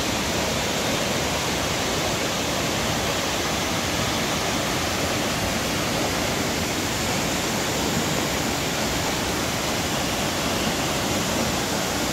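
A stream rushes over rocks.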